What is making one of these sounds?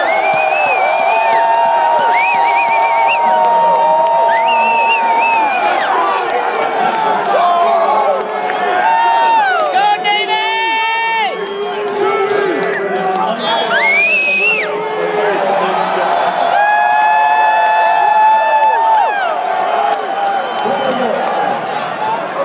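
Men shout and sing together close by.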